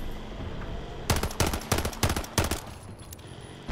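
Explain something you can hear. Single pistol shots crack.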